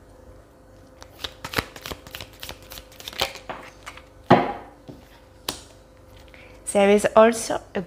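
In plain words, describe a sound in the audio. A deck of cards is shuffled.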